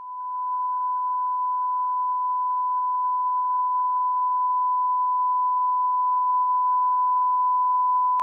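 A steady, high-pitched test tone beeps without a break.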